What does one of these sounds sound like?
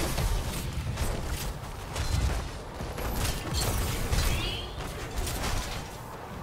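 Deep game booms rumble on and off.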